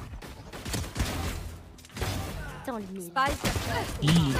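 A revolver fires in a video game.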